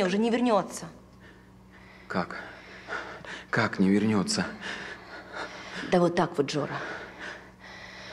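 A man speaks in a strained, muffled voice close by.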